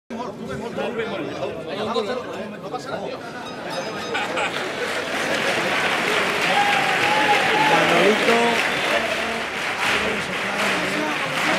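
A group of men talk and call out excitedly in a large hall.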